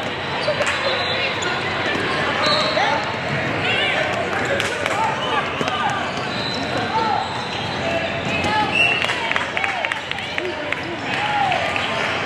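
Young women shout and call out in a large echoing hall.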